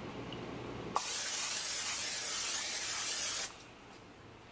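Oil sizzles in a hot pan.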